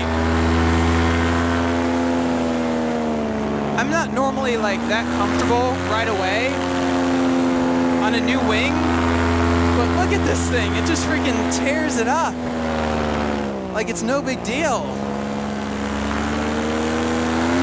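A paramotor engine drones loudly and steadily, its pitch dipping and rising now and then.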